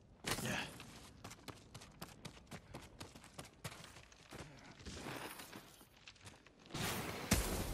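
Footsteps crunch on ground and stone.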